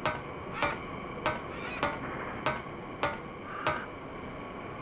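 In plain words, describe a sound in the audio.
Footsteps clank rhythmically on a ladder.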